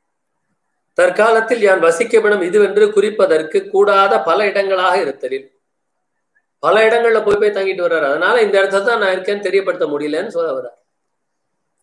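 An elderly man chants a melodic recitation close by.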